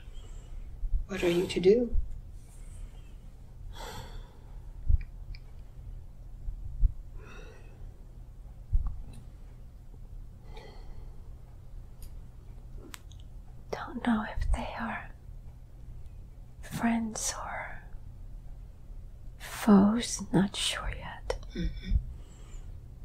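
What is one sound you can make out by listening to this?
An elderly woman moans and groans in pain close by, in short bursts.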